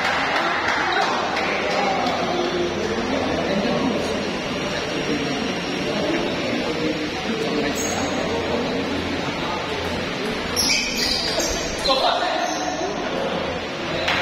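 Men chat in a room nearby.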